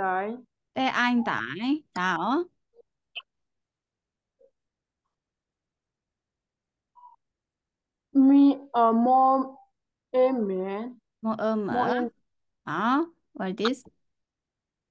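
A woman speaks clearly and slowly over an online call, sounding out syllables.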